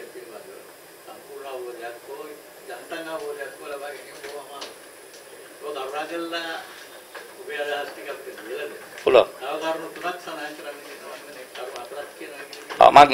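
An elderly man speaks with animation into a microphone.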